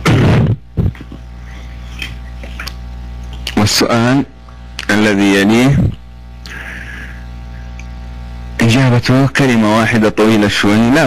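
A man speaks calmly into a microphone, in short bursts.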